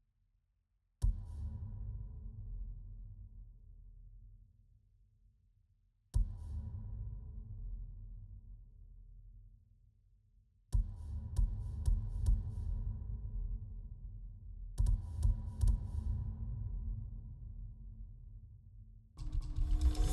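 A soft game chime rings out with a low hum.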